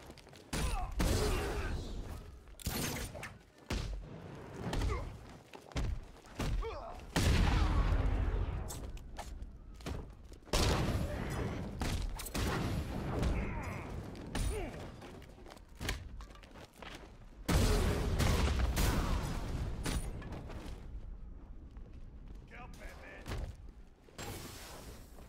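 Heavy punches and kicks land with loud thuds and smacks.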